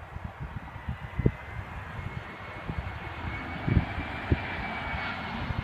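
A twin-engine jet airliner whines and roars as it approaches to land, growing louder.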